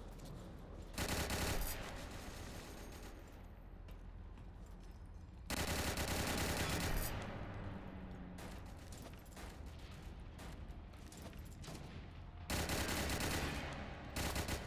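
A machine gun fires in loud rapid bursts.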